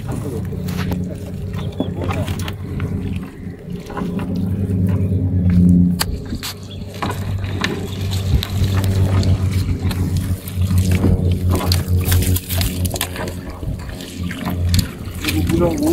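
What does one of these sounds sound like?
A wet fishing net rustles and drips as it is hauled in.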